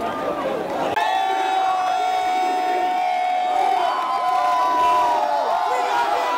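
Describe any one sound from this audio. Young men chant loudly in unison close by.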